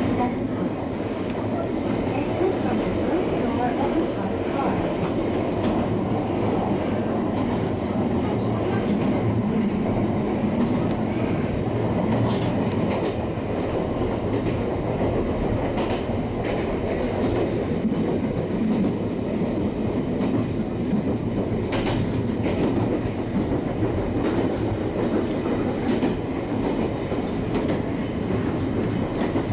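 A train motor hums and rumbles steadily.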